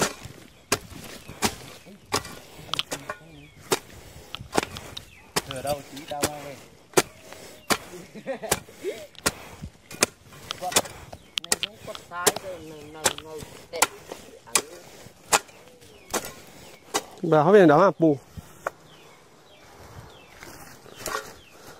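A hoe chops into dry soil with repeated sharp thuds.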